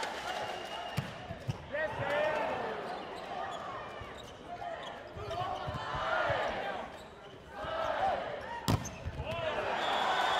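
A volleyball is struck hard several times, with sharp thumps.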